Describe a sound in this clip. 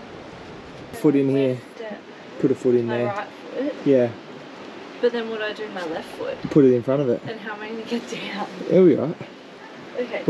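A young woman talks with animation while climbing between rocks.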